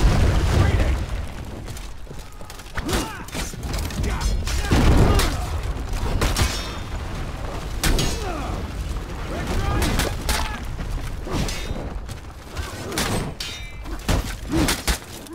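Steel swords clash and clang repeatedly.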